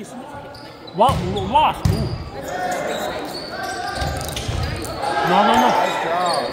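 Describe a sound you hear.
A crowd of young people cheers and shouts in an echoing gym.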